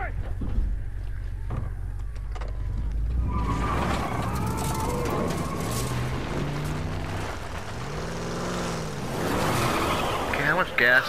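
A truck engine rumbles as it drives.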